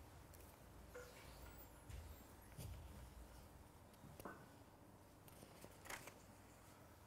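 Paper rustles as pages are handled close by.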